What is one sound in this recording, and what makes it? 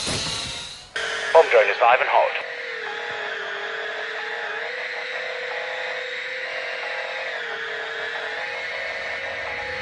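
A small drone's motor whirs with a steady, high hum.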